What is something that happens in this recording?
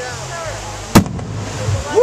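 A firework shell bursts overhead with a sharp boom.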